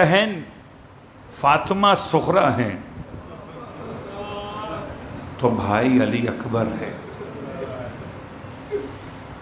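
A middle-aged man speaks slowly and expressively into a microphone.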